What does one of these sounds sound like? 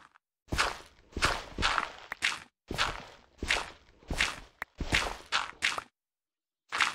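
Dirt crunches in quick, repeated scrapes as a shovel digs.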